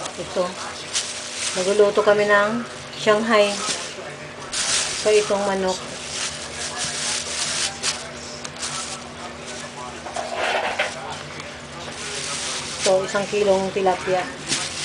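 Plastic bags crinkle and rustle as a hand moves them.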